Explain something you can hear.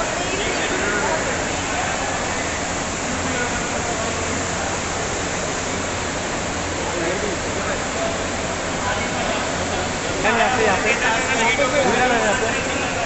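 A busy crowd murmurs in a large echoing hall.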